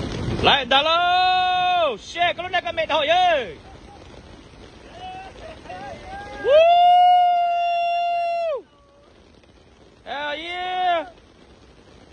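A man shouts loudly with excitement close by.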